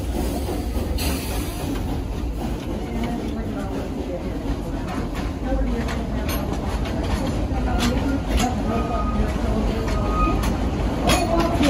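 Train cars rumble and squeak along the track.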